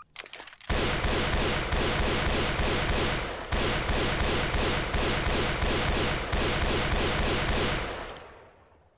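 A rifle fires rapid shots in quick succession, echoing outdoors.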